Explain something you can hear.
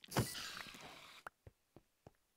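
A pickaxe breaks a block of stone with a crumbling crash.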